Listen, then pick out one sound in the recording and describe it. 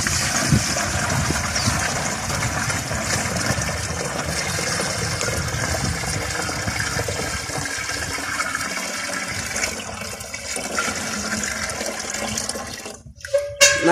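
Liquid pours steadily from a pail into a watering can.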